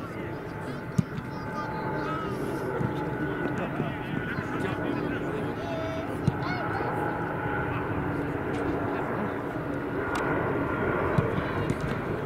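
A football is kicked with dull thumps outdoors.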